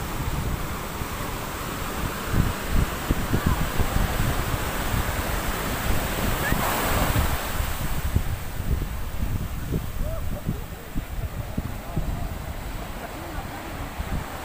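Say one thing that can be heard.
Ocean waves wash and break on the shore.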